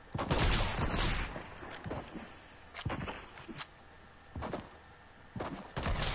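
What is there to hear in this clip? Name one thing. Game footsteps patter on grass.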